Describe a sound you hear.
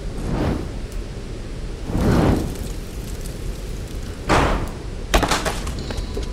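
A fire crackles and roars as it burns.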